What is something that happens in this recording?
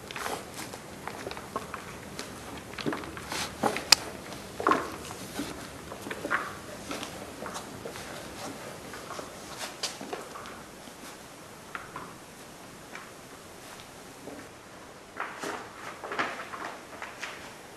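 Hands squish and knead wet soil in a plastic bucket.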